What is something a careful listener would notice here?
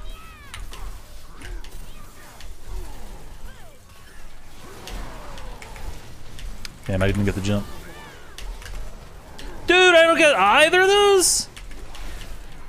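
Magic spells whoosh and crackle as game fighters clash.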